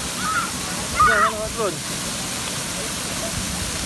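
A child splashes into the water.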